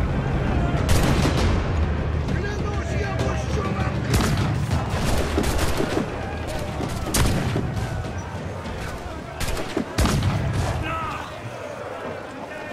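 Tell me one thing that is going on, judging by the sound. A gun fires in sharp cracks.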